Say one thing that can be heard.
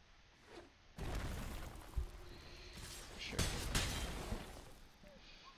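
A magical spell effect whooshes and rumbles.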